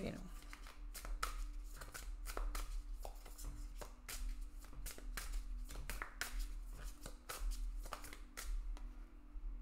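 Playing cards are shuffled by hand with soft, quick flicks and rustles.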